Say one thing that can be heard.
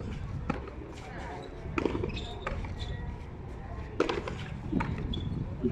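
A handball is struck by hand and smacks off a concrete wall.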